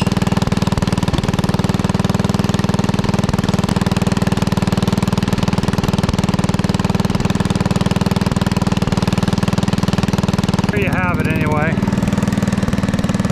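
A tractor engine runs steadily close by.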